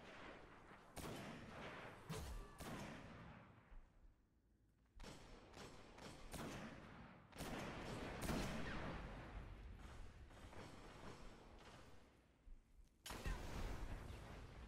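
Loud gunshots crack and echo, one after another.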